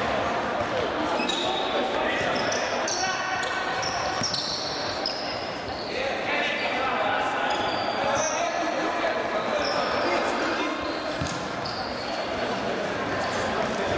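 A ball thuds as it is kicked and passed.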